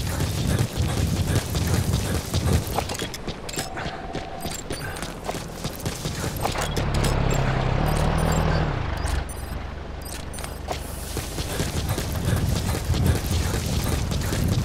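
Footsteps run quickly over dry grass and dirt.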